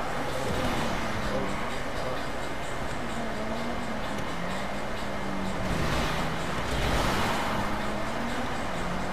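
A car engine revs and hums steadily as the car drives along.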